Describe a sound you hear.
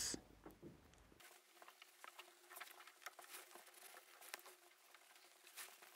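A marker squeaks and taps faintly.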